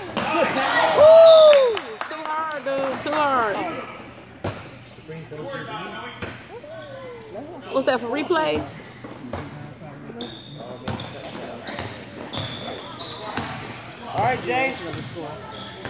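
Women cheer and shout loudly close by in a large echoing gym.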